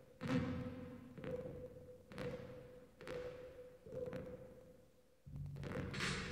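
A few sparse, echoing electronic hits ring out and fade.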